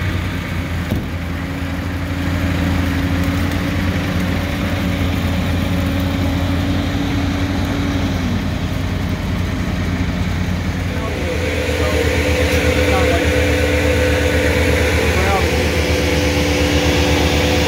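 A wood chipper machine drones steadily.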